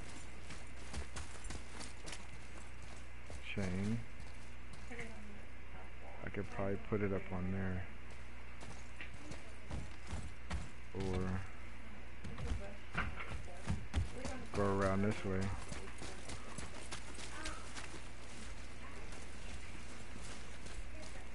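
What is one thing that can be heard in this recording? Heavy footsteps thud on stone and wood.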